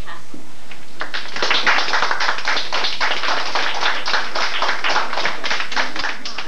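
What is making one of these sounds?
Many children talk and chatter loudly close by.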